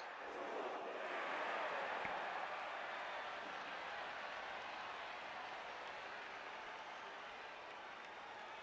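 A stadium crowd roars steadily, slowly fading a little.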